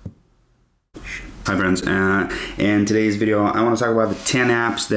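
A young man talks with animation, close to a microphone.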